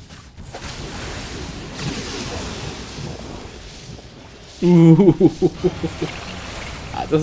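Spell blasts and clashing battle effects crackle and whoosh from a game.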